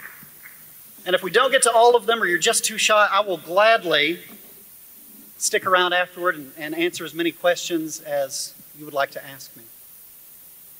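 A man speaks calmly into a microphone in a large hall.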